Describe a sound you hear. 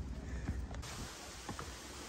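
Footsteps thud on wooden steps.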